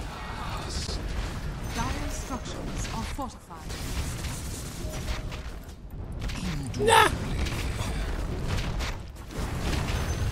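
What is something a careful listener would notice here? Spell effects crackle and clash in a game battle.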